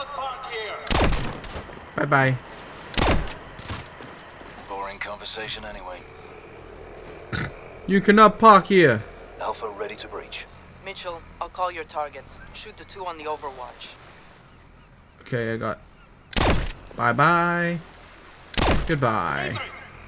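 Gunshots ring out in sharp, loud bursts.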